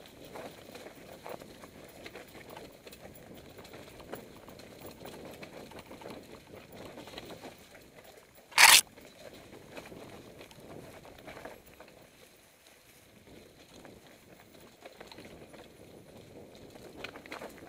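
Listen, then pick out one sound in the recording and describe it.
Bicycle tyres roll and crunch over a dry, leafy dirt trail.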